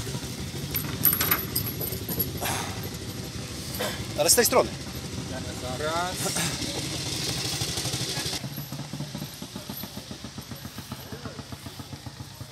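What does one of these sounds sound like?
A motorcycle engine idles with a steady, pulsing chug.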